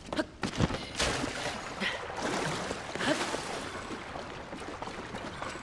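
Water splashes and churns as someone wades through it.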